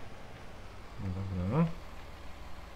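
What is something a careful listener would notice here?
A tractor engine revs up briefly.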